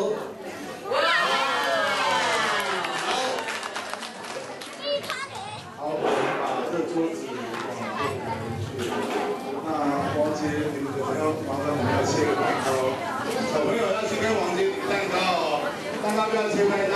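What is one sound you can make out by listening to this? A crowd of children and adults chatter and call out.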